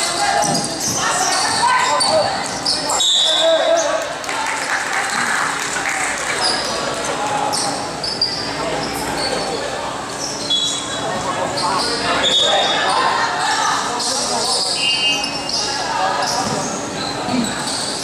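A crowd of children chatters and shouts in the echoing hall.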